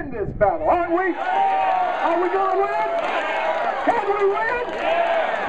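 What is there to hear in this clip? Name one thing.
A man shouts loudly into a microphone outdoors.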